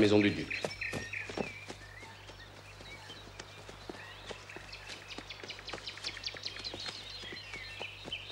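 A man runs over dry leaves.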